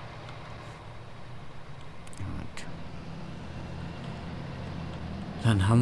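A tractor engine hums steadily.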